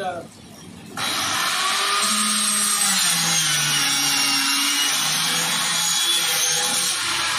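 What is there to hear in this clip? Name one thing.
A power drill whirs loudly, its motor whining and changing pitch.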